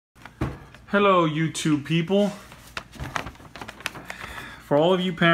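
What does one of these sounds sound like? A sheet of paper rustles and crinkles in a hand.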